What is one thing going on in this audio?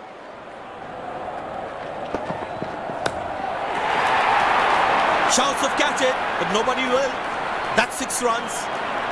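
A stadium crowd cheers.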